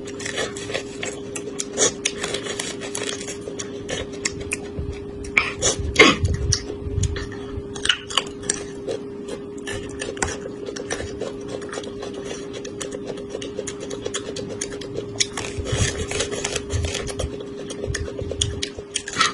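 A woman bites and chews corn close to a microphone, with crisp crunching.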